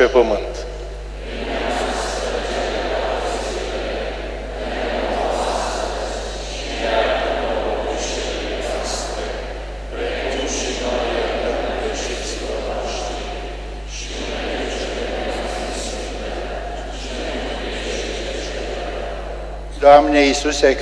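A congregation murmurs a prayer together in unison, echoing in a large hall.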